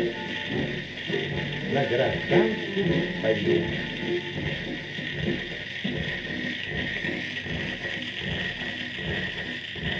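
An old record plays music with a tinny, muffled sound.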